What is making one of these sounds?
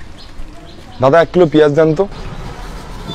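A young man speaks loudly and clearly close to a microphone.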